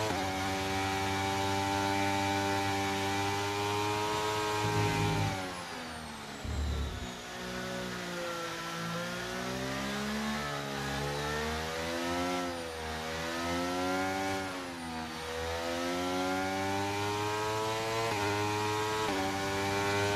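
A racing car engine hums and revs up and down.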